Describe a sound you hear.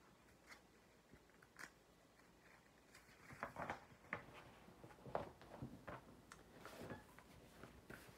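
Paper pages rustle as a book is turned.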